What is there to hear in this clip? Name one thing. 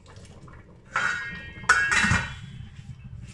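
A metal lid clanks onto a steel pot.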